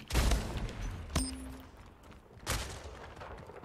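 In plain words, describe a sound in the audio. A futuristic gun fires with sharp blasts.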